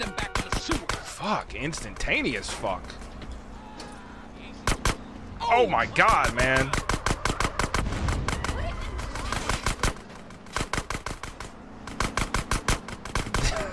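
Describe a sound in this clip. Rapid gunshots crack again and again.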